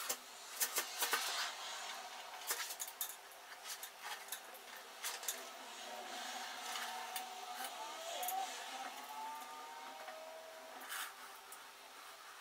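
Thin wire rustles and scrapes as it is twisted.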